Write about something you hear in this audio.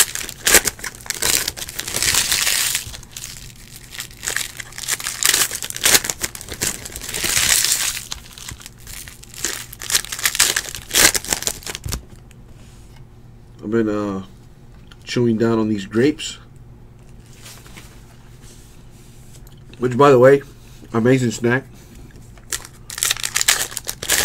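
Foil card wrappers crinkle and tear as they are ripped open.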